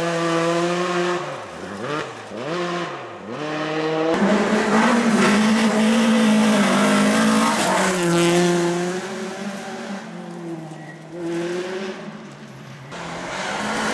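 A rally car engine roars and revs hard, rising and dropping in pitch through gear changes.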